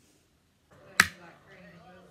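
A plastic bottle lands on the floor with a sharp knock.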